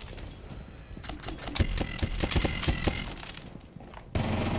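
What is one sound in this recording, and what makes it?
Rapid gunshots crack in a video game.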